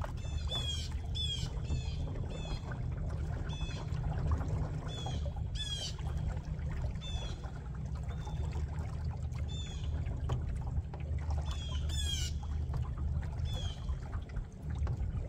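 Water laps gently against a small boat's hull.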